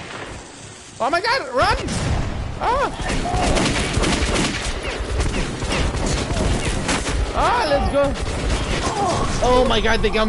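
A creature shrieks and snarls close by.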